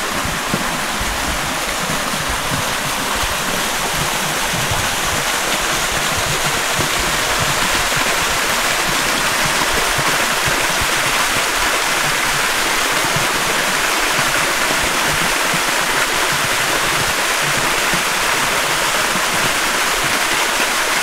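A shallow stream trickles over stones.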